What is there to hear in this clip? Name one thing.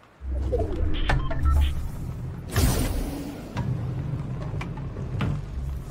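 A rolling ball rumbles low in a video game.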